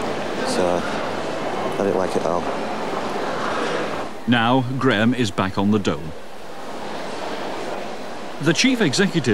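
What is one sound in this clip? A crowd murmurs and chatters in a busy echoing hall.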